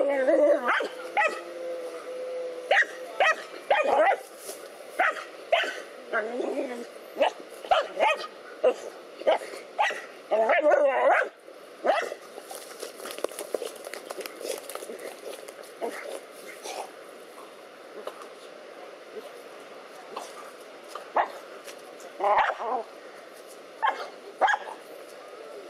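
Dogs bark and snarl fiercely at close range.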